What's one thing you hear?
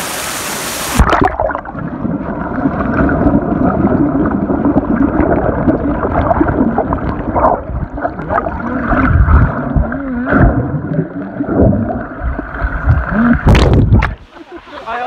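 Water churns and rumbles, heard muffled underwater.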